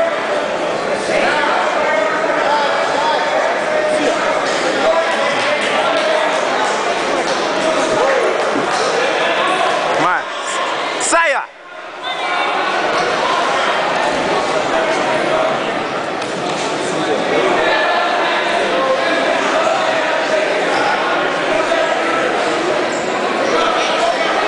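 A crowd of spectators chatters and shouts throughout a large echoing gym.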